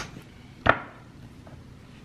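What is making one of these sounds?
Glass containers clink on a countertop.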